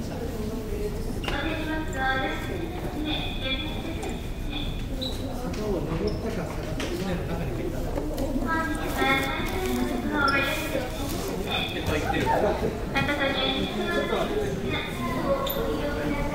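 A crowd of young people chatter nearby in an echoing indoor space.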